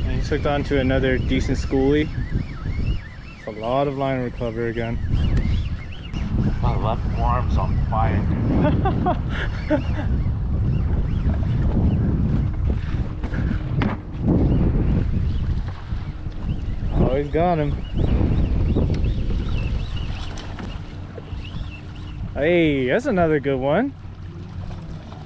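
A fishing reel clicks as line is reeled in.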